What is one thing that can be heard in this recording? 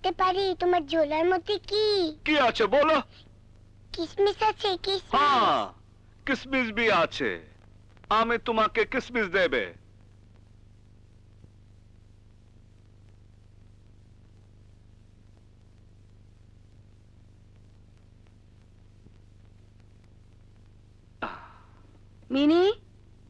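A young girl talks close by in a high, lively voice.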